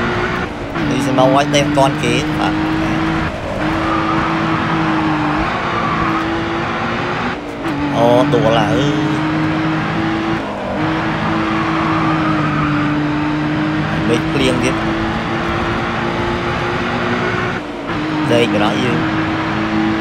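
Tyres screech while the car drifts through corners.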